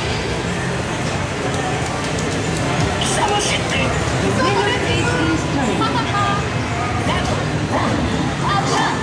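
Arcade game music and sound effects play loudly from a machine's speakers.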